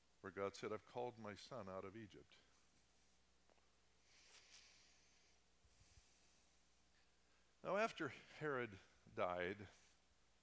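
A middle-aged man speaks with animation through a microphone in a hall, pausing between phrases.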